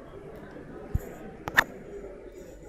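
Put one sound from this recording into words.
Metal boules clack together on the ground.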